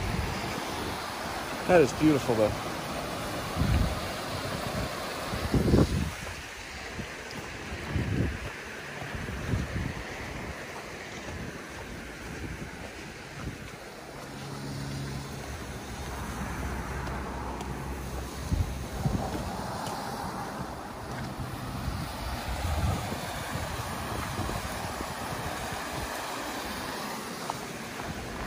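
A stream rushes steadily over rocks nearby.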